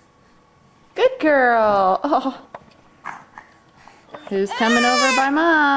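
A baby girl squeals and babbles loudly close by.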